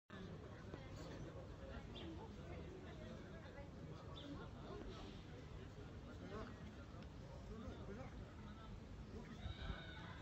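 A large crowd of men murmurs and talks at a distance outdoors.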